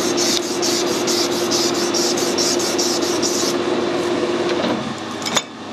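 A lathe spins with a steady whirring hum and then winds down to a stop.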